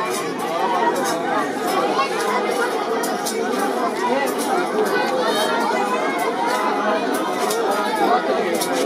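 A large crowd of men chants loudly outdoors.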